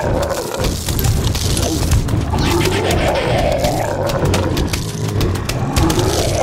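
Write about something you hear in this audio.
Game sound effects of peas popping and splatting repeat rapidly.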